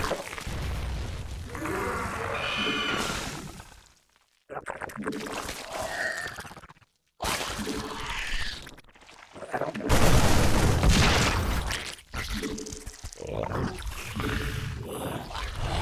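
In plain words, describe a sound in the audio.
Game battle sounds crackle and boom.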